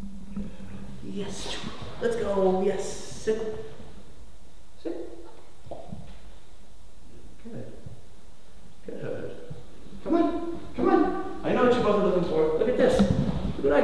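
A man talks softly and warmly to puppies nearby.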